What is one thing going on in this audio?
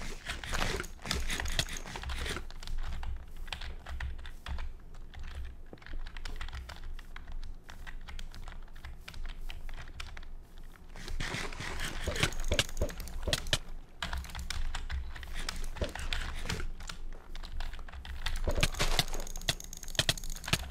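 Keyboard keys click rapidly and steadily.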